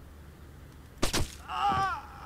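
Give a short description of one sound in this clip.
A silenced gunshot fires.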